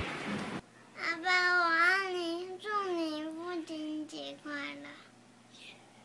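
A young girl sings close by.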